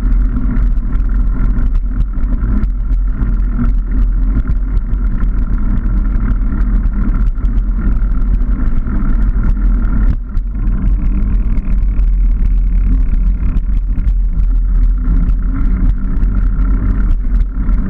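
Bicycle tyres rumble steadily over a rough paved lane.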